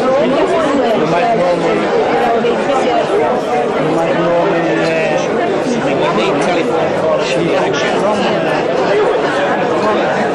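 A crowd of men and women chatter all around in a busy room.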